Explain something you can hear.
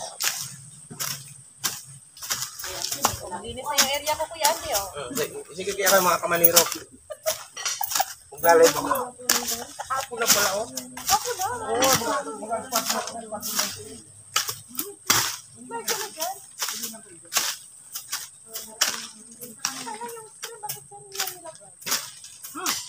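A hoe chops repeatedly into the dirt.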